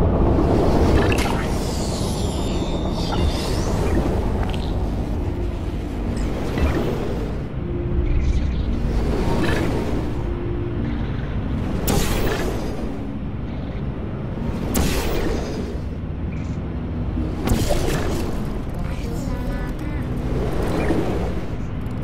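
A sci-fi gun fires with short electric zaps, again and again.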